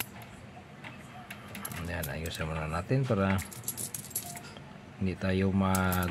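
Metal coins clink and click together.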